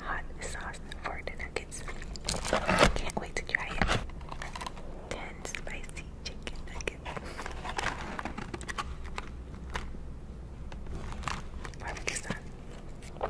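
A sauce packet crinkles in fingers.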